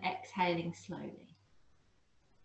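A young woman speaks calmly and softly, close to the microphone.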